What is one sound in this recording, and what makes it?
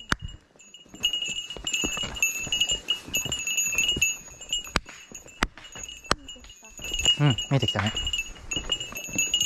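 A young woman speaks casually nearby.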